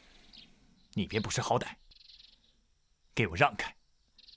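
A second young man answers sharply, close by.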